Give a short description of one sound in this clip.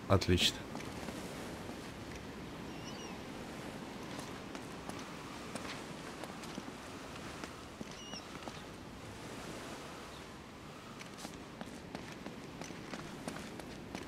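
Footsteps tread on stone and grass.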